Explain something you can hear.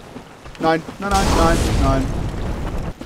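A fireball bursts with a loud roar.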